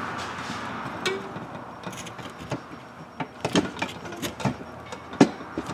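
A metal tool clicks and knocks sharply.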